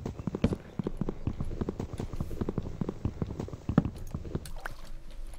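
An axe chops wood with rapid, dull knocks.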